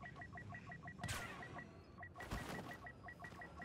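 Distant explosions boom and rumble.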